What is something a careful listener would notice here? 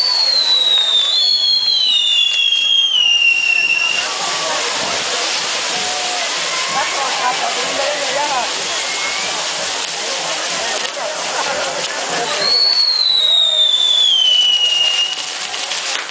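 Spinning firework wheels whistle, falling in pitch.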